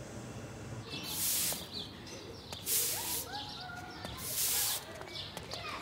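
A twig broom sweeps across pavement in brisk strokes.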